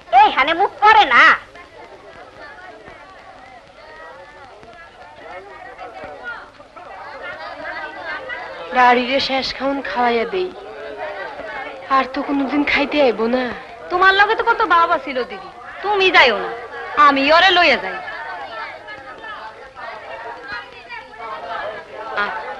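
Several women talk animatedly close by.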